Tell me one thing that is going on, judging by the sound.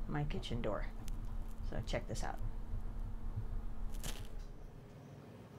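A middle-aged woman speaks calmly and close by.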